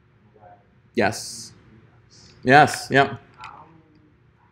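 A man speaks calmly into a nearby microphone, with short pauses.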